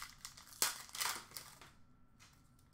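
Hands handle plastic-wrapped card packs with soft crinkles and taps.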